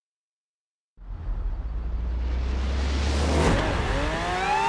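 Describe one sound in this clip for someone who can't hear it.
A car engine roars and revs up, rising in pitch.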